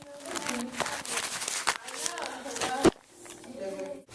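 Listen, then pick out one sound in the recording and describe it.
Paper money rustles as it is handled.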